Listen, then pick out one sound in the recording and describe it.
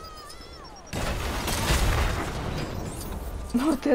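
A loud explosion bursts and rumbles away.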